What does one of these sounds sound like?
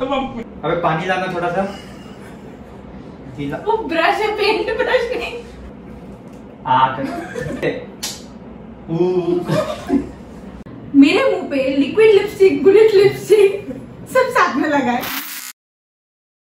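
A young woman talks and laughs close by.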